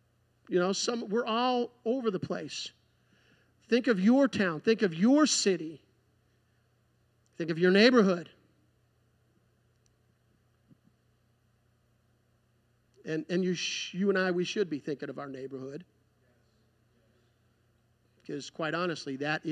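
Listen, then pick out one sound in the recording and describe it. A man speaks calmly through a microphone, in pauses.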